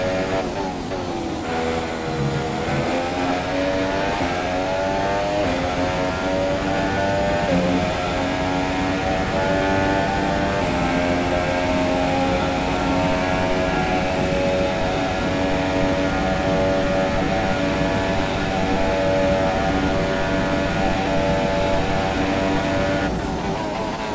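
A racing car engine screams at high revs, shifting up through the gears.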